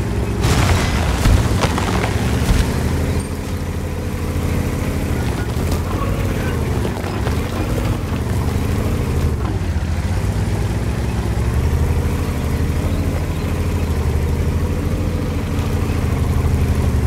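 Tank tracks clank and grind over the ground.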